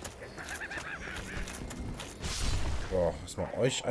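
A sword slashes and strikes bodies with heavy thuds.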